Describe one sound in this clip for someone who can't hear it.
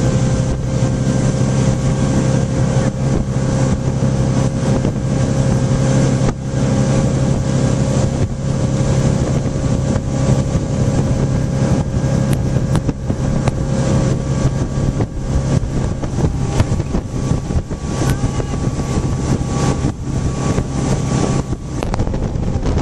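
A motorboat engine roars steadily close by.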